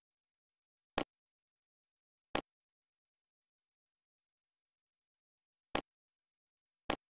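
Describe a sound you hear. Short game menu clicks sound a few times.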